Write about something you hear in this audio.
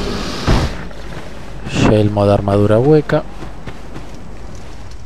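Footsteps crunch through grass and undergrowth.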